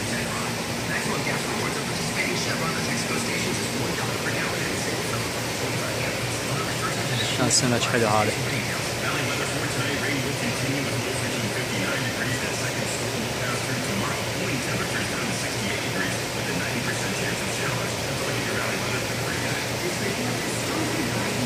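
Aquarium pumps hum steadily with a low drone.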